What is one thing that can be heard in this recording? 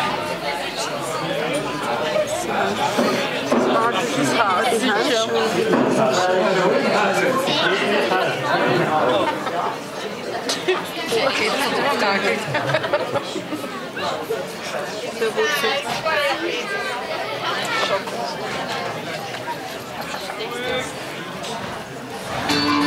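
A crowd of people talks and chatters nearby.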